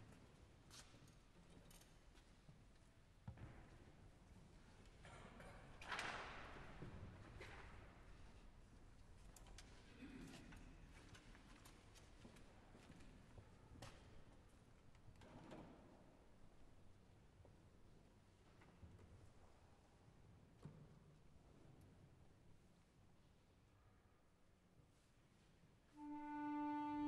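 Audience members cough and shuffle quietly in a large echoing hall.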